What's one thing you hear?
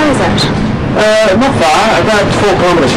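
A middle-aged man speaks in reply.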